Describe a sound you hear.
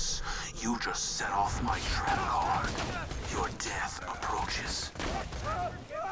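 Gunshots fire with loud bangs.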